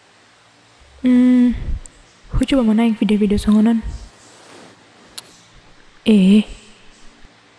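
A young woman speaks softly to herself nearby.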